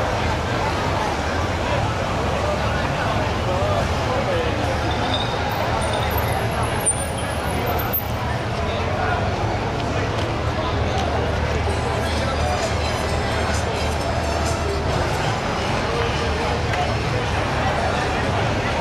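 A large crowd of people chatters loudly outdoors.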